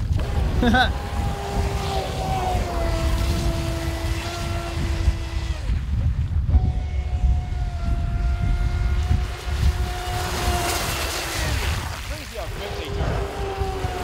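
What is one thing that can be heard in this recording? A small boat motor whines at high pitch as a model boat races across the water.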